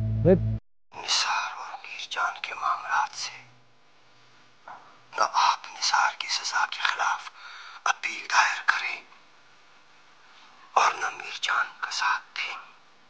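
A young man talks calmly on a phone.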